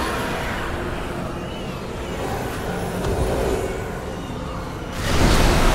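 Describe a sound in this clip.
Magical spell effects whoosh and shimmer.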